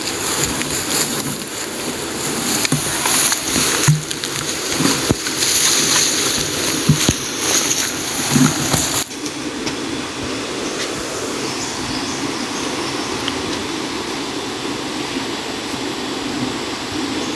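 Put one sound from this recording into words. A shallow stream trickles over rocks.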